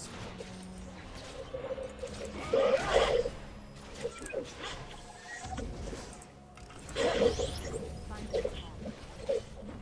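Game hits and impacts clash repeatedly.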